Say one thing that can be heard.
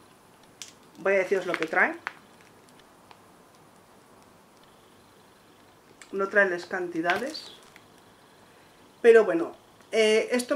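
A woman speaks close by, calmly, in short phrases.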